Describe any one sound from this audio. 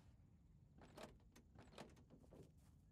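A car door opens and thuds shut.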